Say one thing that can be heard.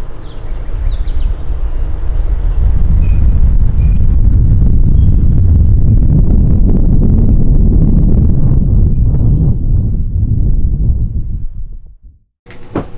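Wind buffets loudly against the microphone outdoors.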